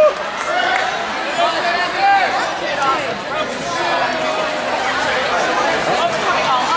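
A crowd of adults and children chatter throughout a large echoing hall.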